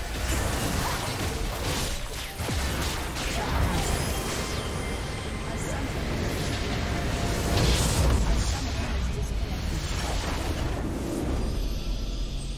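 Game battle effects clash and explode rapidly.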